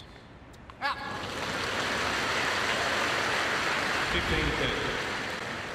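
A crowd applauds and cheers.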